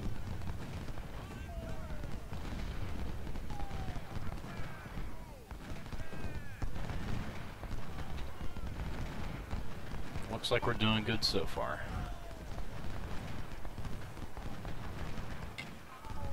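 Cannons boom in the distance.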